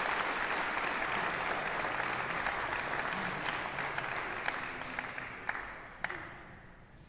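An audience applauds in a large echoing hall, then the clapping fades.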